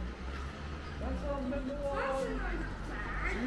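A young woman and a young man chat nearby.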